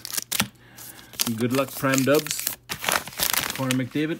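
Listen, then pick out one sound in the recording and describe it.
A foil card pack wrapper crackles as it is torn open.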